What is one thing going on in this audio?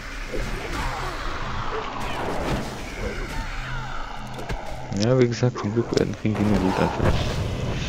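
Blades clash and spells burst in a fight.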